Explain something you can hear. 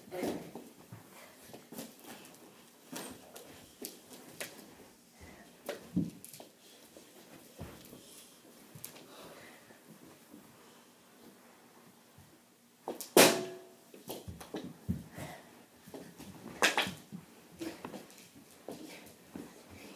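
A hockey stick knocks and clatters on the floor indoors.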